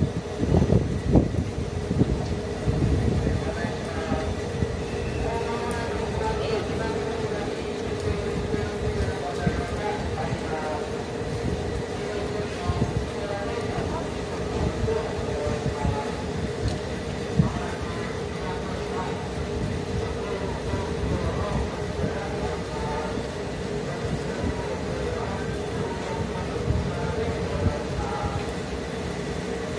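A parked train hums steadily close by.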